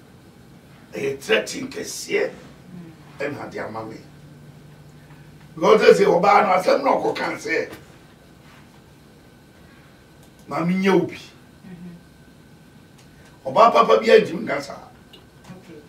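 An elderly man speaks calmly in bursts, close to a microphone.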